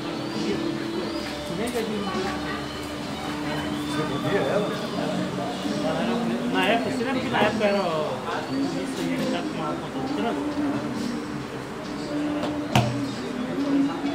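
Several men talk casually nearby, outdoors.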